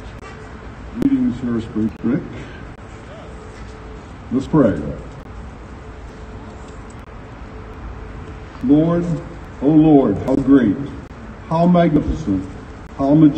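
An elderly man speaks into a microphone over a loudspeaker, in short phrases with pauses.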